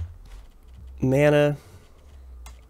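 A young man makes a short drawn-out vocal sound close to a microphone.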